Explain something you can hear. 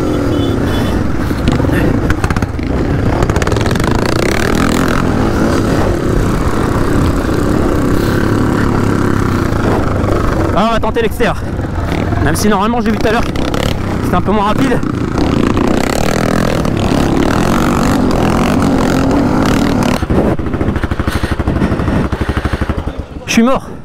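A dirt bike engine roars loudly close by, revving up and down.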